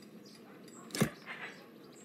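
A game menu button clicks.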